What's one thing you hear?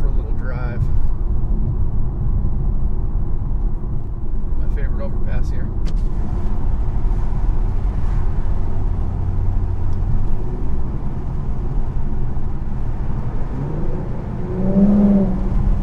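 Tyres roll on a road with a steady rumble.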